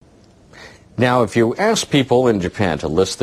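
A man reads the news calmly through a microphone.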